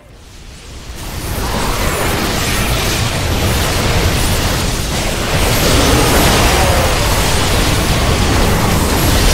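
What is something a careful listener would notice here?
Explosions boom and energy blasts crackle in a loud battle.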